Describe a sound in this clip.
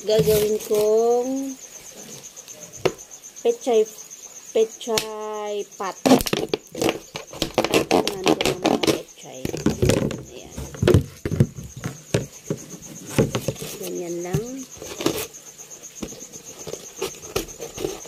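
Scissors snip into a plastic bottle.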